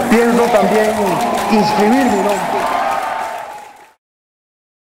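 A crowd of people sings loudly together.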